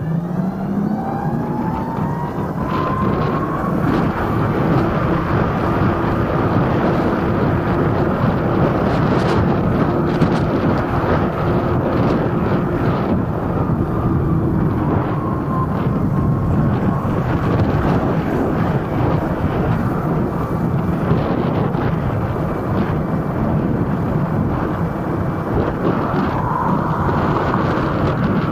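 Wind rushes steadily past a moving scooter.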